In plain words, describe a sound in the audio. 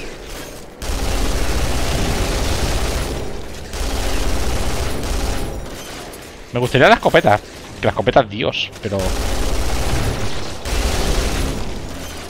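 A gun fires in rapid, continuous bursts.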